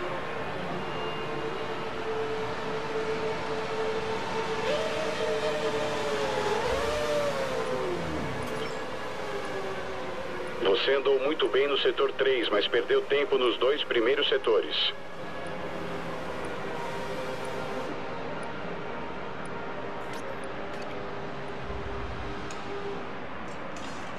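A racing car engine idles with a steady hum.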